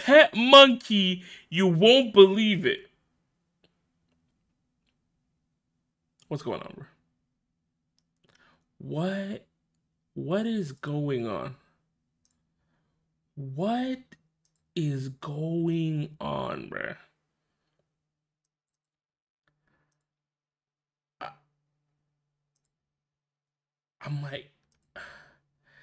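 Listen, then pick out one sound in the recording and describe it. A young woman speaks with animation into a close microphone, in short bursts with pauses.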